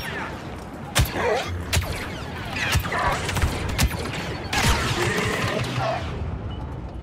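A humming energy blade swings with whooshing sweeps.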